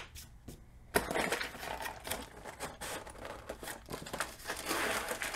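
Cardboard flaps creak and tear as a box is opened.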